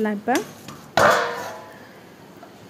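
A metal lid clanks against a clay pot.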